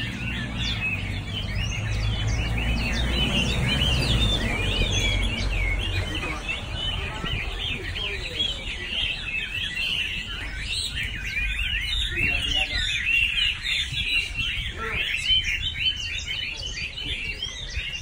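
Many caged birds chirp and trill rapidly and continuously.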